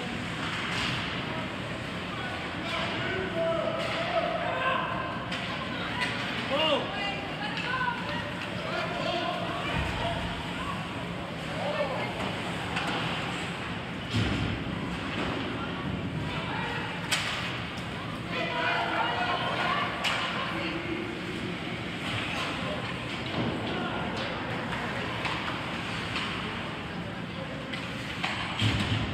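Spectators chatter and call out in an echoing rink.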